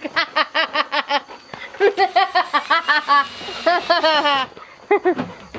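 A young woman laughs loudly and heartily close by.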